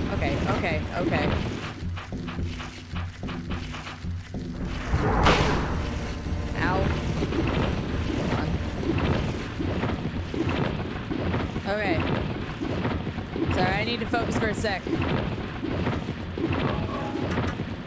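A young woman talks casually and with animation into a microphone close by.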